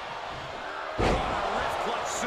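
A heavy body slams onto a wrestling ring mat with a loud thud.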